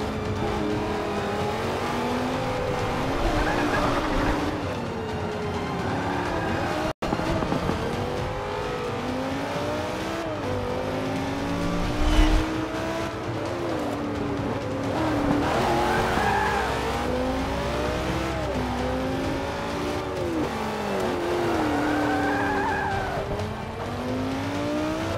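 Other race cars' engines whine close by.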